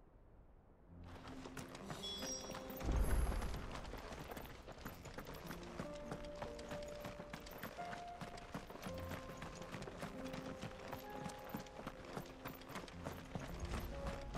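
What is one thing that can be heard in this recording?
Footsteps crunch on gravel as a man runs.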